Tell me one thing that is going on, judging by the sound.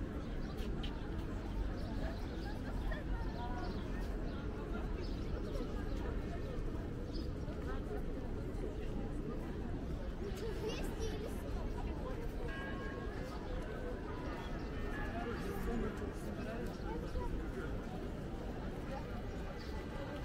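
A crowd of people talks and murmurs outdoors all around.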